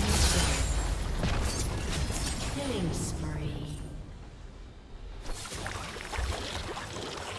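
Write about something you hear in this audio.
Game spells burst and crackle during a fight.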